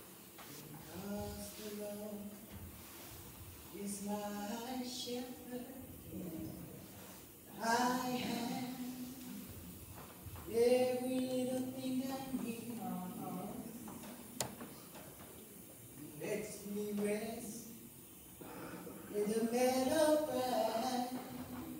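A woman sings slowly into a microphone in an echoing hall.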